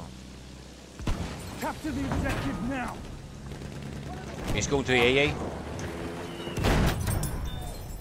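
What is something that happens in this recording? Explosions boom in bursts.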